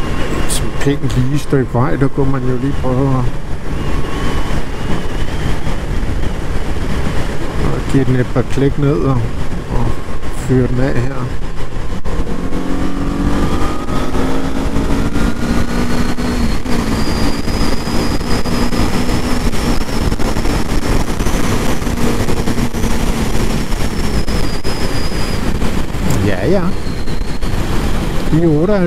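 A motorcycle engine roars steadily, rising and falling in pitch.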